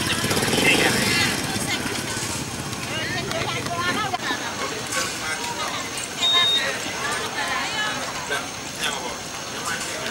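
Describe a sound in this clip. Fishing nets rustle as they are pulled by hand.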